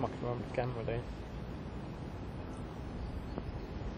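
A small object plops into the water nearby.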